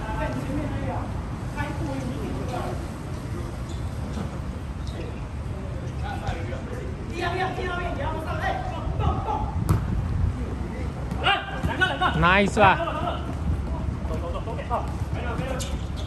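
Men shout and call out to each other nearby, outdoors.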